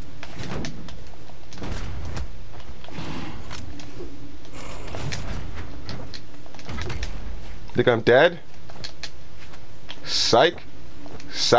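Weapons whoosh and strike in a video game fight.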